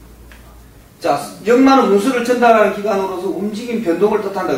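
A middle-aged man speaks clearly, close by.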